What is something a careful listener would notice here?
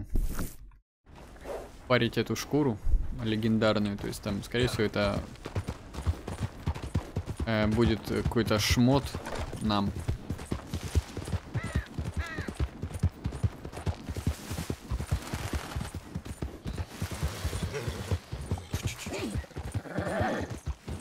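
A horse trots steadily over stony ground, its hooves clopping.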